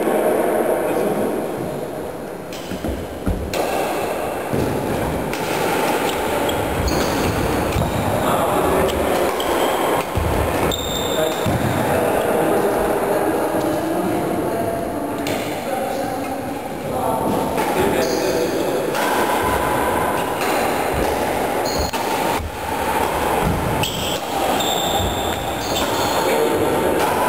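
Sports shoes squeak and thud on a wooden floor.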